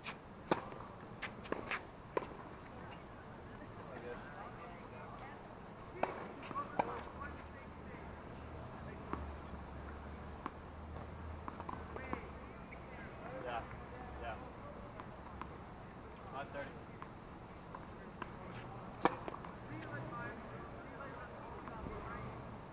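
Tennis balls pop off rackets in a rally outdoors.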